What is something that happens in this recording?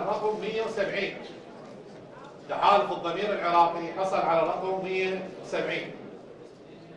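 A man reads out clearly through a microphone in a large hall.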